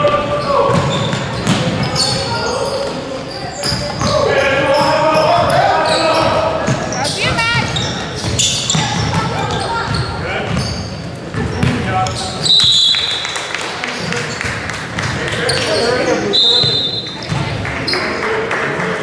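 Children and adults shout and cheer from the sidelines.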